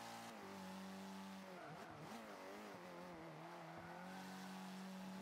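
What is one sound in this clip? Tyres screech through a sharp turn.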